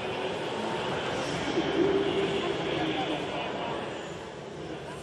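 A young woman speaks breathlessly into a microphone, close by.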